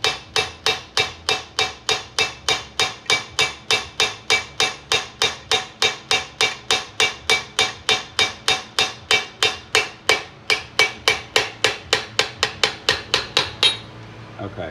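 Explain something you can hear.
A metal part clicks rapidly and evenly as it is turned by hand.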